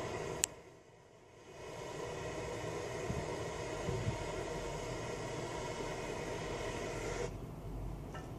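A small engine runs steadily close by, then stops.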